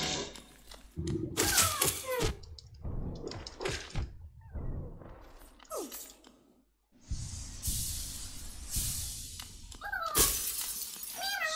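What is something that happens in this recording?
Sharp game sound effects burst and crackle.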